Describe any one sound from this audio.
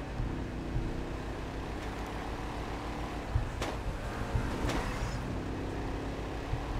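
A car engine rumbles steadily as a car drives fast.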